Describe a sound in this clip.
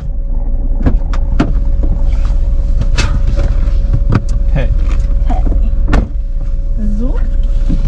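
A car door opens and thumps shut.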